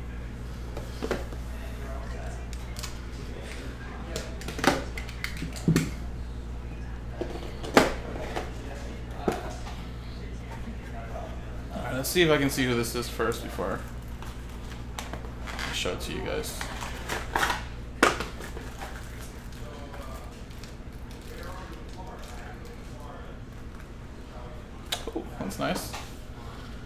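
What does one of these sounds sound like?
Cardboard packaging rustles and snaps as hands open a box.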